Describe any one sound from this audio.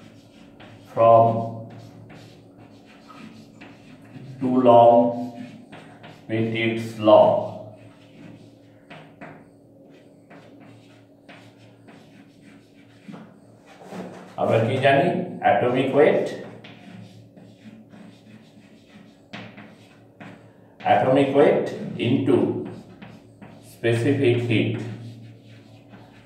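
A middle-aged man speaks calmly in short phrases, close by.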